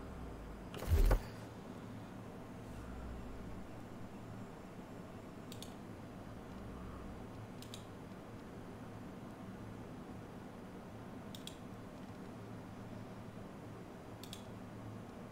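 Short soft clicks sound as menu items are selected.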